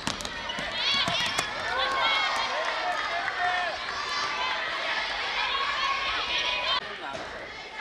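Young girls shout and cheer excitedly in a large echoing hall.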